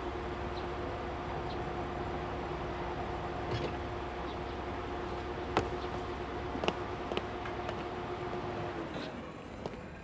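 A van engine idles with a steady hum.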